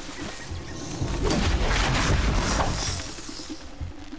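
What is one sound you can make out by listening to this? Metal clangs and crackles in a short fight with a machine.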